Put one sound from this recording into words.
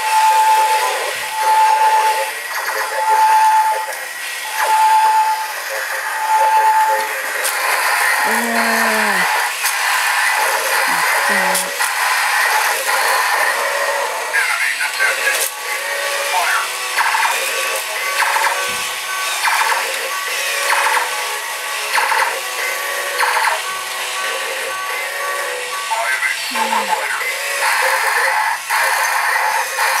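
Toy robots whir and click as they move.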